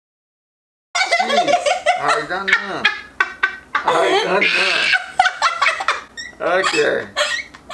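A man laughs heartily nearby.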